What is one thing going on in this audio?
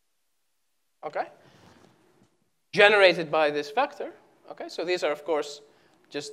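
A man speaks calmly through a clip-on microphone.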